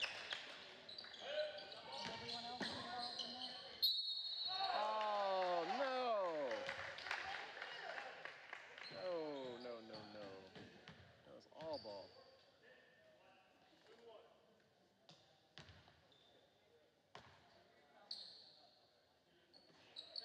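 Players shout to each other across the court.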